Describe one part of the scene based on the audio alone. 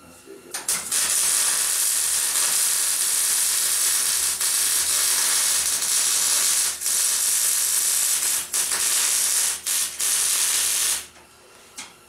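An electric welding arc hisses and crackles loudly and steadily.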